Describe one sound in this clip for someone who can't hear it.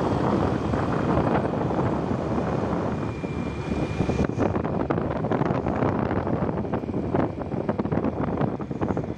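Wind rumbles and buffets loudly against the microphone outdoors.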